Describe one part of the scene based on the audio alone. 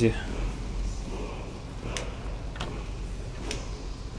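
A wooden chest lid creaks open.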